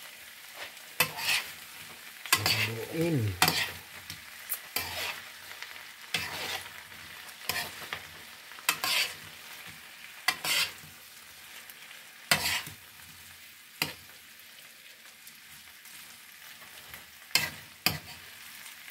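A metal spoon scrapes and clinks against a frying pan.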